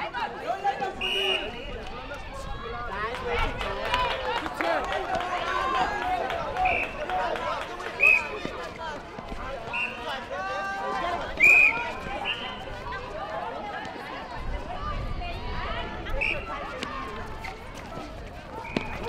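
Shoes squeak sharply on a hard court.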